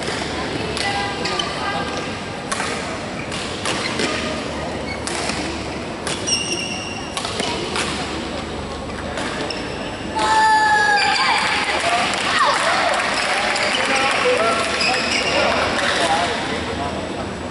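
Sounds echo around a large hall.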